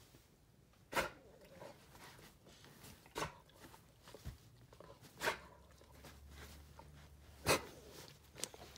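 A dog licks a hand with wet smacking sounds.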